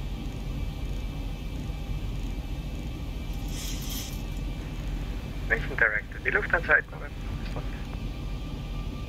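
Aircraft engines hum with a low, steady rumble.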